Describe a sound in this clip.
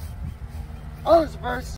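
A young man shouts a drill command.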